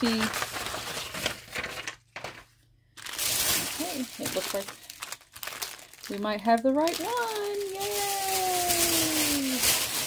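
Tissue paper rustles and crackles under hands.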